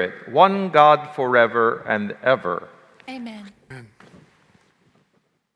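An elderly man chants through a microphone in a large echoing hall.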